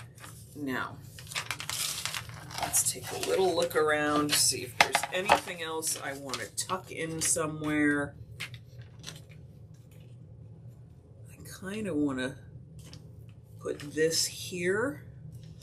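Paper crinkles and rustles under hands.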